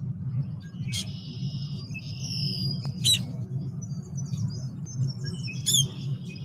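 A bird gives short, high chirping calls among reeds.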